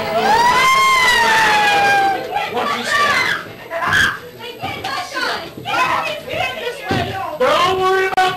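Women talk excitedly and nervously close by.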